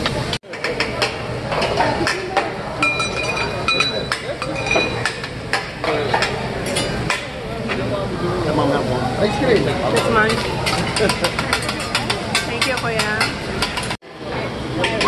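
Metal spatulas clack and scrape on a hot griddle.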